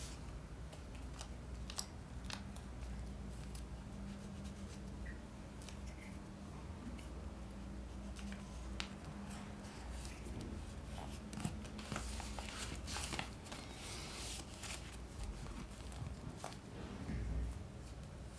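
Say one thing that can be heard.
Paper rustles and crinkles as hands handle magazine pages.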